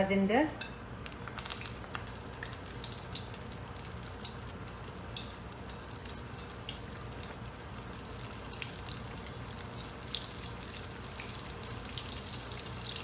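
Oil sizzles and crackles as patties fry in a pan.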